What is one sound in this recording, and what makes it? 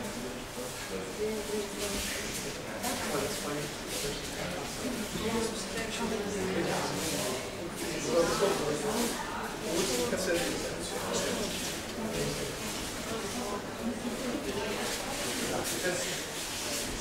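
Many young people chatter and talk at once in a large echoing hall.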